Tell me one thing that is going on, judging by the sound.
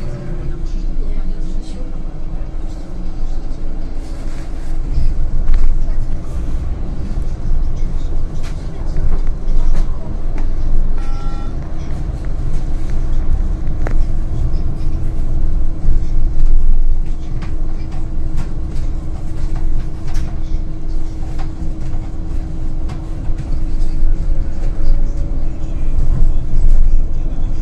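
A bus engine hums steadily from inside.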